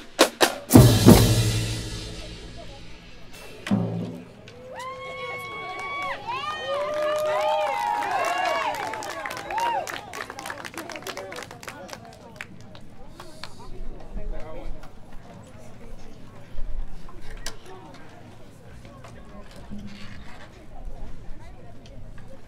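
Snare drums tap out quick rhythms outdoors.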